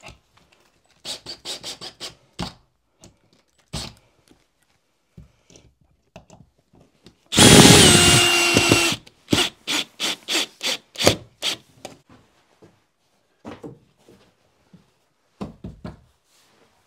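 A hammer knocks against a wall.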